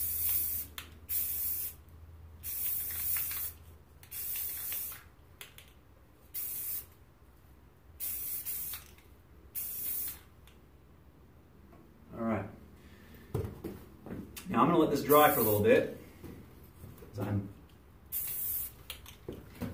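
A spray can rattles as it is shaken.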